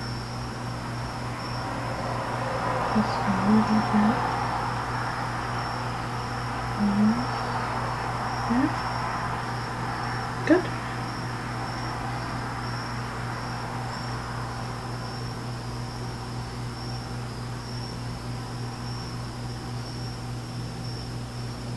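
A brush softly strokes wet paper.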